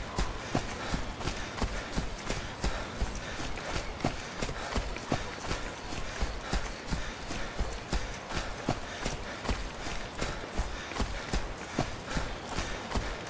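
Footsteps tread steadily over soft ground.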